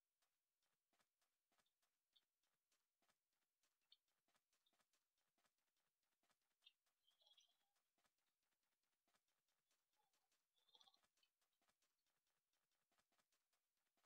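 Footsteps tap steadily on hard pavement.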